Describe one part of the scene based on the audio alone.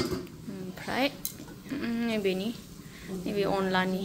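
A metal lid clanks against a pan.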